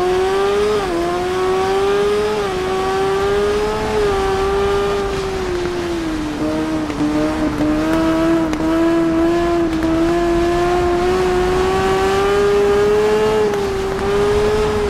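A motorcycle engine roars loudly at high revs, its pitch rising and dropping with gear shifts.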